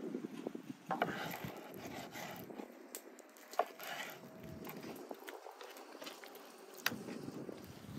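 A knife taps against a wooden board.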